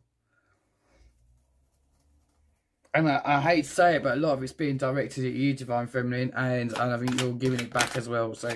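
Playing cards rustle softly as hands handle a deck.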